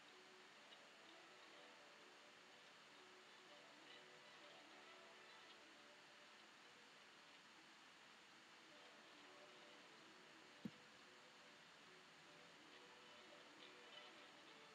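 A paintbrush softly strokes across paper.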